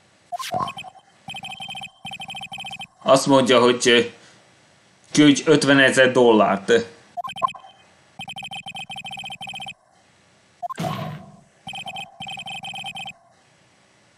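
Rapid electronic blips chatter in quick bursts.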